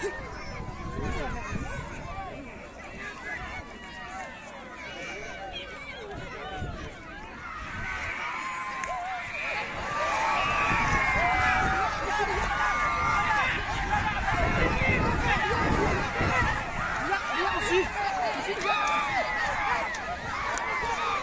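A large crowd shouts and cheers outdoors, growing louder.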